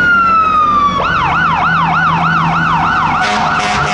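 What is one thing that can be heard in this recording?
A fire truck siren switches to a fast yelp.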